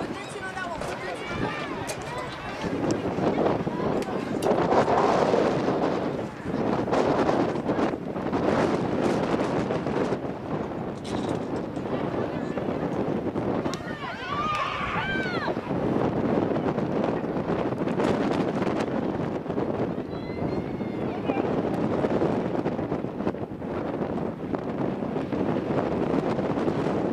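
Young women players shout to each other across an open outdoor field.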